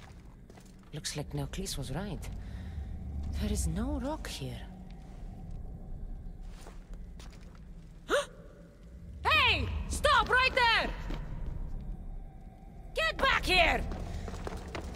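A young woman speaks firmly, then shouts sharply.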